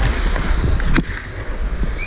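A hockey stick smacks a puck.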